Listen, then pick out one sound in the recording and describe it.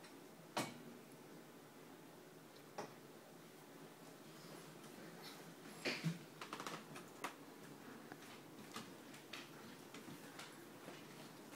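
A small wooden chair knocks and creaks on a wooden floor.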